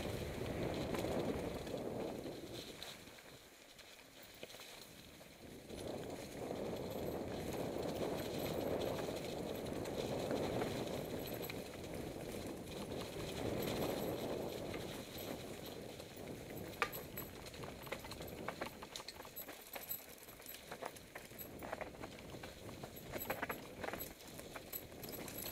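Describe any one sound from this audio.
Bicycle tyres roll and crunch over dry leaves and dirt.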